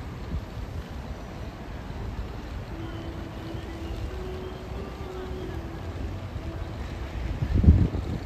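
A broom sweeps a paved path.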